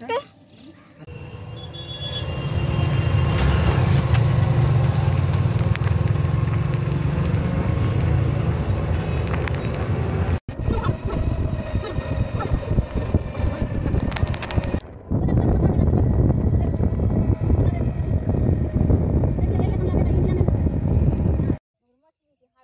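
A motor rickshaw engine rumbles steadily.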